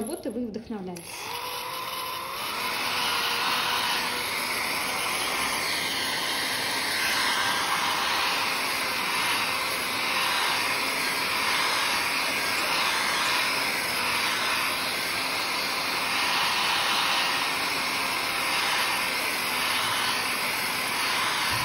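A hair dryer blows steadily nearby.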